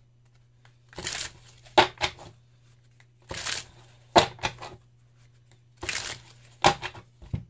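Playing cards riffle and snap together as a deck is shuffled on a table.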